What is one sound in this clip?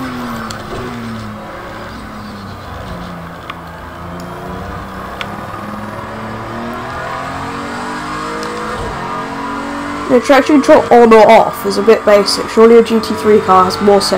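A race car engine roars, its pitch climbing and dropping as it shifts gears.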